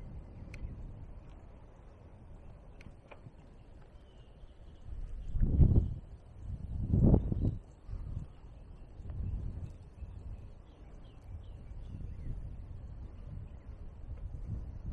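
A car rolls slowly along a paved road.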